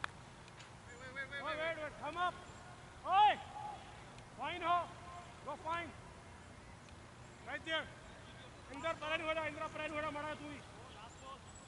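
A man calls out loudly across an open field.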